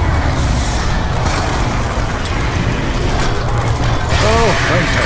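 Flames roar in a loud blast.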